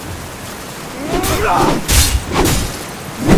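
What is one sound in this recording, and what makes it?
Swords clash and strike in a short fight.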